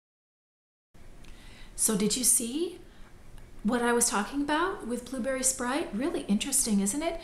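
A middle-aged woman speaks close up, calmly and with animation.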